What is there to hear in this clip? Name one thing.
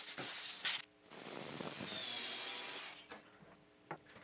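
A grinding wheel whirs against metal.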